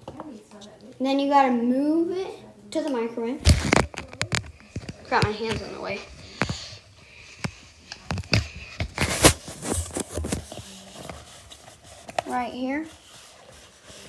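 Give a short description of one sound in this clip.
A young boy speaks close to the microphone.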